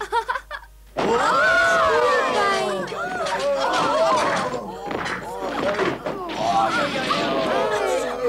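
A crowd of voices chatters and babbles loudly.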